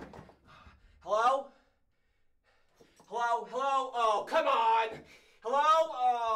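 A young man shouts and cries out loudly.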